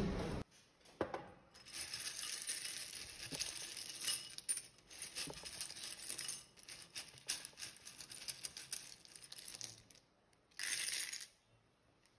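Small wooden tiles rattle and clatter in a bowl.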